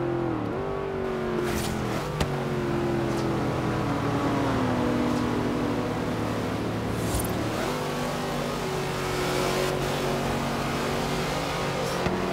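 A car engine roars steadily, its pitch dropping as the car slows.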